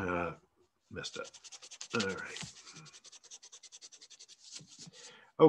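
A pen scratches rapidly on paper.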